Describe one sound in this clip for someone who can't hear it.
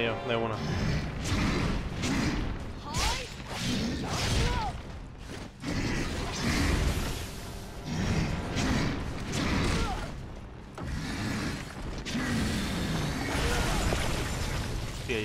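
Swords clash and slash repeatedly.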